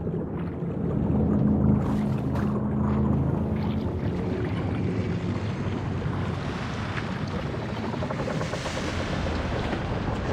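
Water rumbles and burbles deep underwater.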